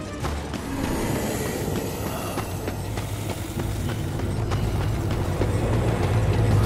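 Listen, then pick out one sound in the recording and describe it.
Armoured footsteps thud and clank on stone at a steady pace.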